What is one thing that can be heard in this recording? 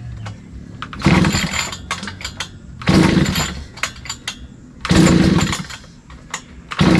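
A small engine's pull cord is yanked hard several times.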